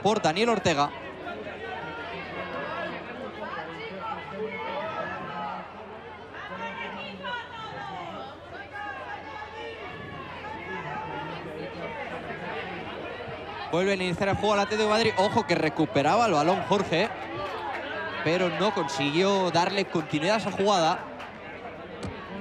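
Men and boys shout and call out across an open outdoor field.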